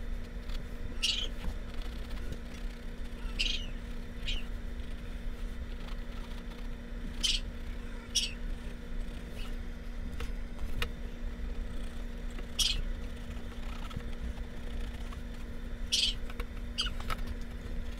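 A coloured pencil scratches in short strokes on a stretched canvas.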